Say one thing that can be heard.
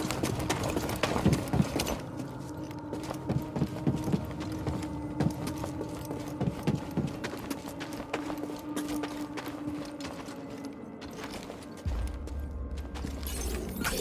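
Footsteps thud on a hard floor as a person runs and walks.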